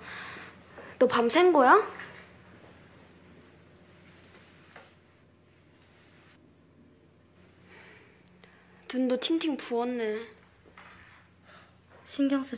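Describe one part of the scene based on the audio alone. A young woman answers softly nearby.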